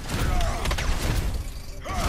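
A blade slashes with a sharp whoosh.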